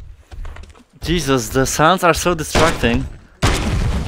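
A young man talks loudly and excitedly.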